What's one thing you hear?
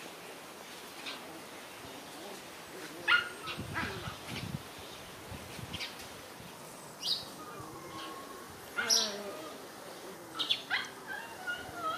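Puppies yelp and whine as they play-fight.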